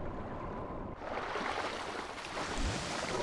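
Water splashes as a man swims.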